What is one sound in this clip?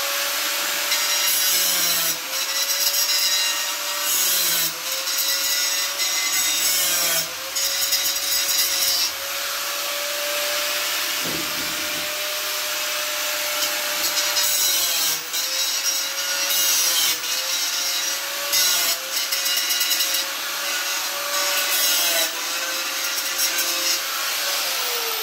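A grinder disc scrapes and rasps against wood in bursts.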